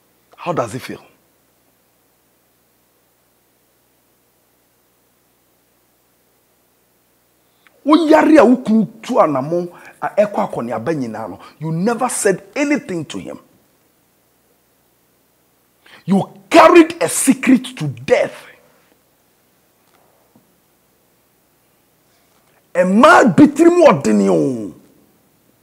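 A man speaks with animation in bursts close to a microphone, with long pauses.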